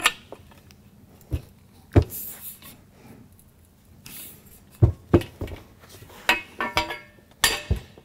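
Metal rails clatter and knock together.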